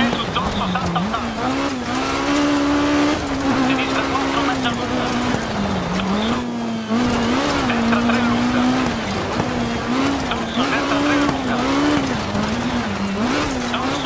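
A rally car engine revs up and down as the car races along.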